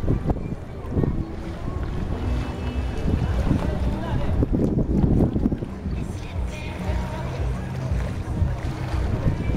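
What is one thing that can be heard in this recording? A motorboat engine drones across the water.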